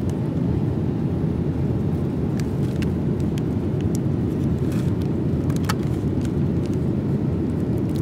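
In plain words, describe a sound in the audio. A plastic snack wrapper crinkles in a hand.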